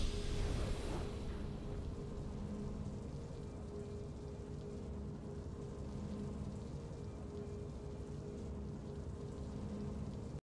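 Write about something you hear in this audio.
A soft, steady triumphant music tune plays quietly.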